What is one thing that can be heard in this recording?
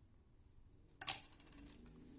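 A circuit board knocks down onto a hard surface.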